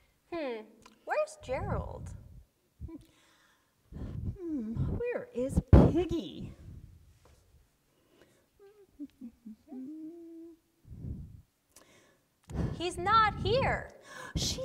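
A woman speaks in a high, playful character voice, close by.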